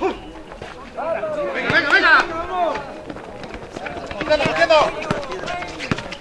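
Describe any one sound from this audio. Young men shout to each other outdoors during a game.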